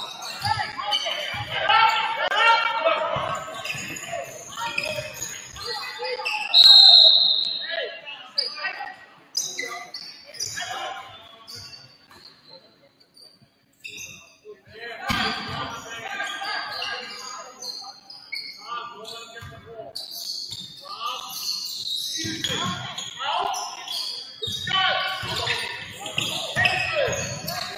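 Spectators and players call out and cheer.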